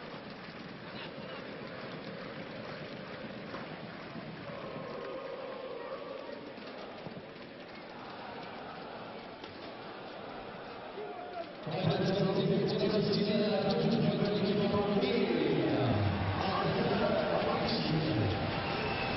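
A stadium crowd murmurs and cheers throughout.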